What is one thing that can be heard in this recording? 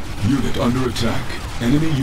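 A laser weapon fires with a buzzing hum.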